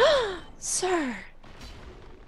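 A young woman cries out close to a microphone.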